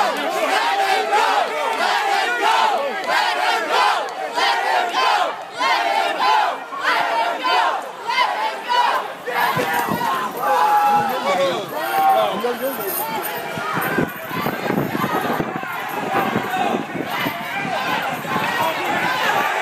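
A crowd of men and women shout and chant loudly outdoors, close by.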